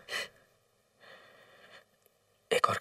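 A man sighs and sobs quietly.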